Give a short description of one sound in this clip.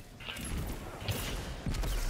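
A gun fires a burst of energy shots.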